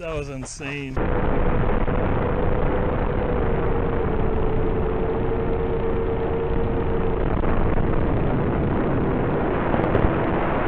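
Drone propellers whir loudly and steadily.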